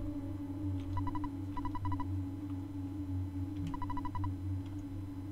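Quick electronic blips chatter as text prints out.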